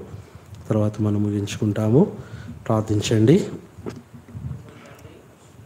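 A man speaks into a microphone in a strong, drawn-out, singing voice.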